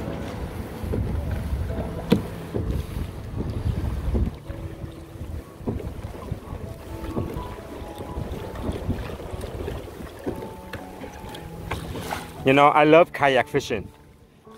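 Small waves lap against a kayak's hull.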